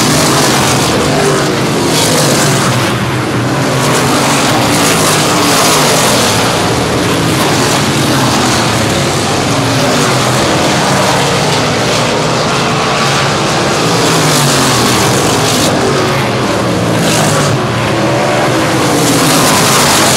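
Race car engines roar loudly, their pitch rising and falling as they speed past.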